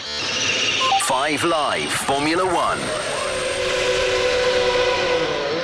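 A racing car engine screams past, its pitch sweeping up and down through gear changes.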